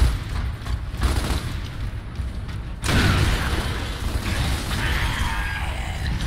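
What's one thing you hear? A heavy wheel valve creaks as it turns.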